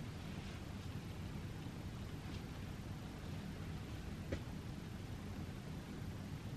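Soft knit fabric rustles as a sweater is handled.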